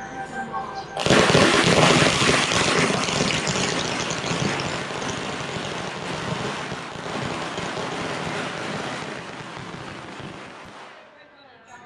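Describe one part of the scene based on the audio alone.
Firecrackers crackle and pop in a long, loud burst outdoors.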